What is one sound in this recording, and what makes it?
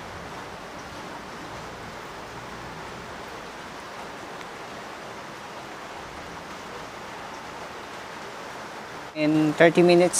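A washing machine churns laundry with a steady swishing hum.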